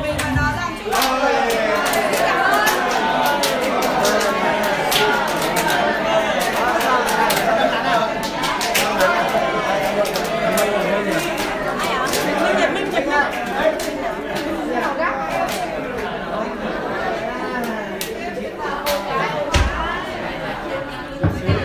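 Hands clap sharply again and again.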